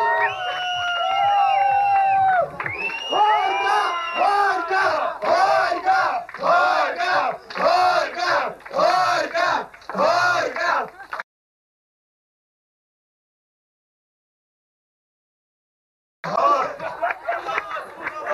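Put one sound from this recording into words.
A crowd of guests cheers and chants loudly close by.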